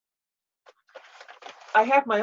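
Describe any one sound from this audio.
A middle-aged woman speaks calmly over an online call.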